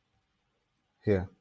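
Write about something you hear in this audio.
A young man speaks briefly, close to a microphone.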